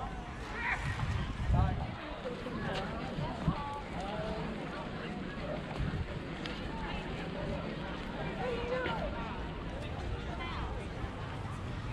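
A crowd of people chatters in many voices outdoors.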